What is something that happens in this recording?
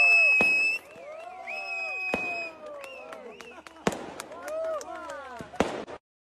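Firework rockets whistle as they rise.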